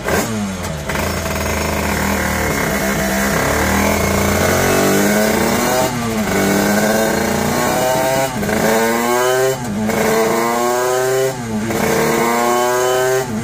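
A motorcycle engine roars at high speed, rising and falling in pitch.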